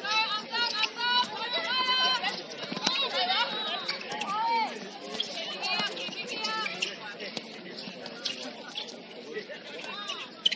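Young women shout and call out to each other across an open outdoor court.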